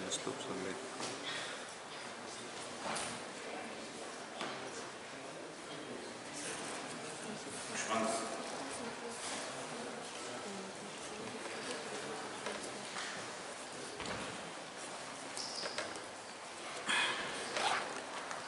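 A man lectures calmly in an echoing room, heard through a microphone.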